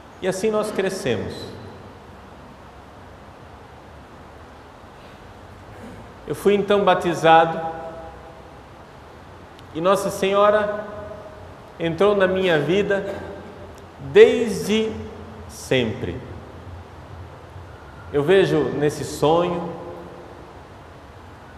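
A middle-aged man speaks calmly into a microphone, with pauses, in a slightly echoing room.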